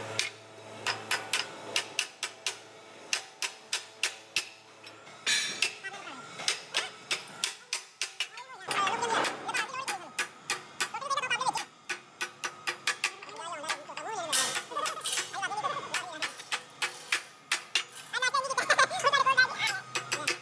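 A hammer strikes metal in quick, ringing blows.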